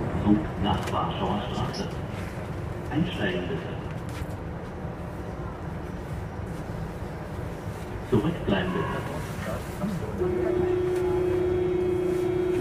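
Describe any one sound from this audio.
A subway train rumbles steadily.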